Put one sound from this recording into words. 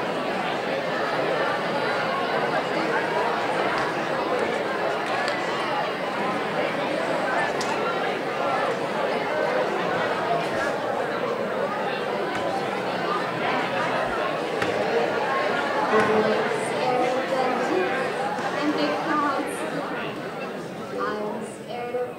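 An acoustic guitar is strummed through speakers in a large echoing hall.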